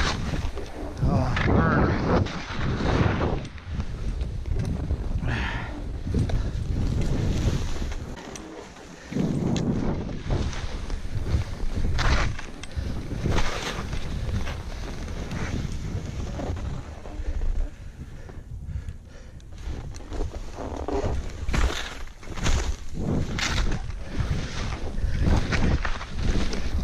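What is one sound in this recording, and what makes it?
Skis hiss and swish through deep powder snow.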